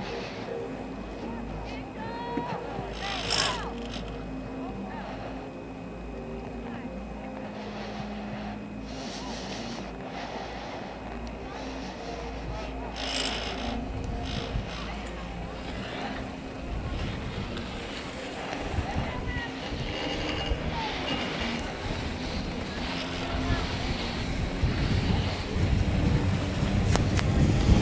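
Wind buffets the microphone outdoors, growing stronger toward the end.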